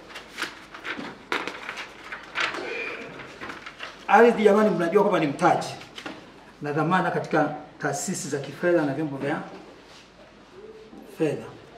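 Paper sheets rustle in a man's hands.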